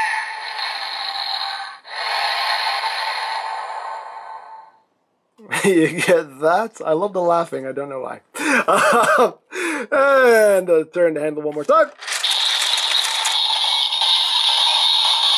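A toy belt plays bright electronic music through a small speaker.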